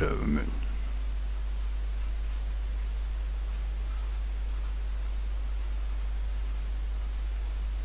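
A pen scratches on paper as it writes.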